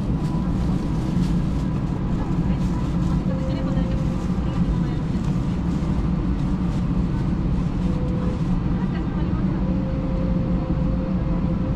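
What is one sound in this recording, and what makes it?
A steady, low engine roar fills an aircraft cabin.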